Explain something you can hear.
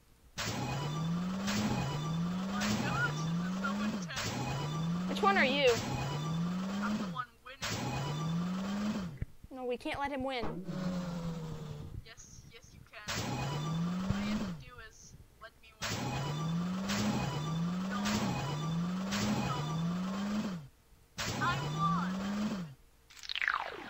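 Toy racing car engines whine and rev up over and over.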